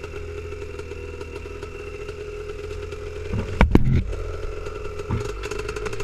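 Branches scrape and brush against the ATV.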